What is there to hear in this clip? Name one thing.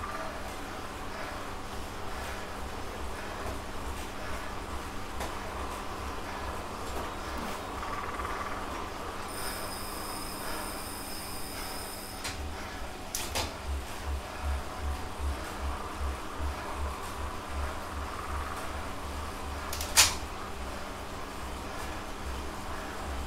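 An indoor bike trainer whirs with a steady rhythmic thumping.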